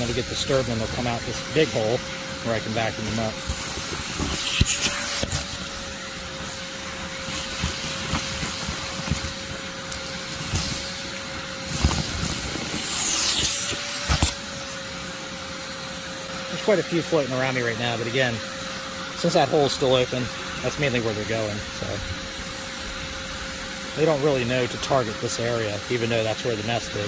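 A vacuum cleaner hums with a steady whine.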